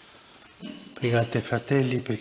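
An elderly man speaks slowly into a microphone in an echoing hall.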